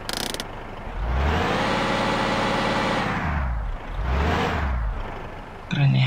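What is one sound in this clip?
A bus engine revs up and winds down.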